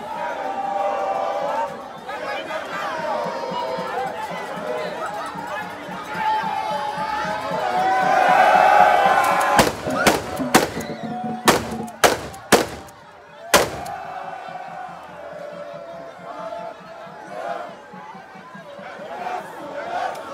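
A dense crowd of men and women chatters and calls out nearby, outdoors.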